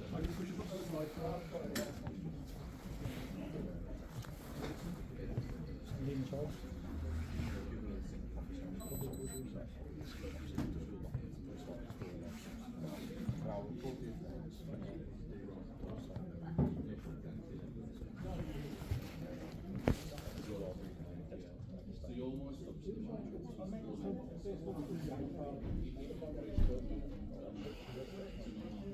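Men talk calmly nearby in a room with some echo.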